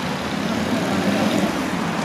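An aerosol can sprays with a hiss.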